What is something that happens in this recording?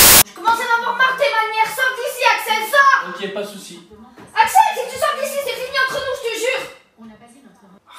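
A young woman shouts playfully.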